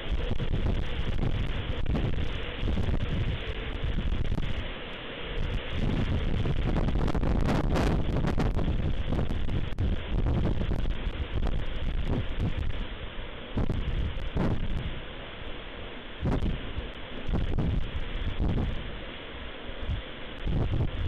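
Strong wind gusts roar and buffet outdoors.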